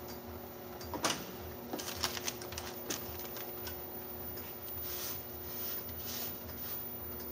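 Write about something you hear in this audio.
Parts of a machine click and knock as a man handles them.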